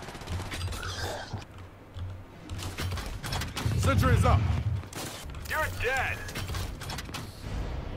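Heavy footsteps thud on hard ground as a soldier runs.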